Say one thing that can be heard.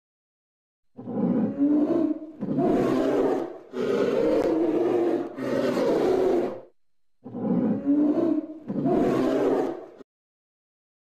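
A polar bear growls deeply in long rumbling bursts.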